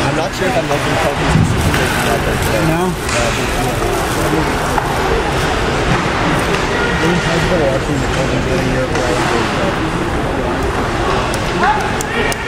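People chatter nearby in a large echoing rink.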